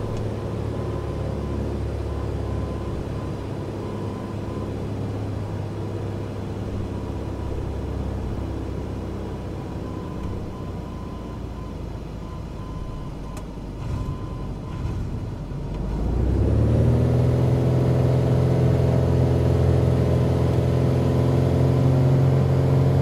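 A small propeller plane's engine hums steadily, then roars up to full power.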